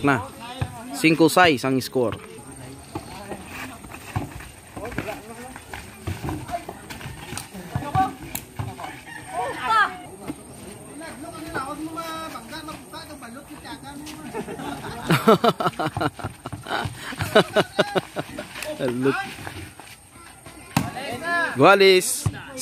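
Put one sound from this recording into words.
A basketball bounces on hard dirt.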